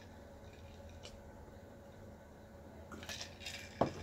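A young woman gulps a drink close to a microphone.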